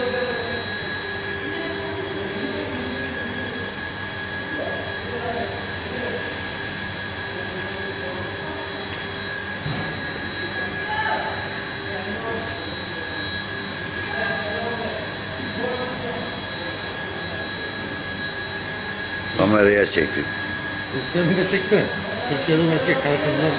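Factory machines hum and whir steadily.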